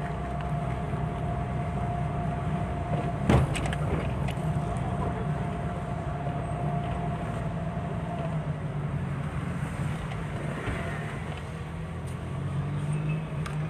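A car engine hums steadily from inside the car as it drives along a street.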